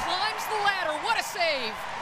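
A crowd claps.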